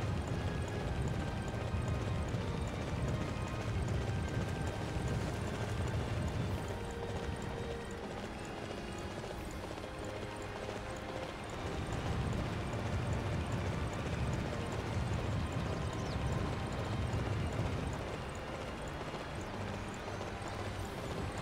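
Horse hooves pound steadily on a dirt track.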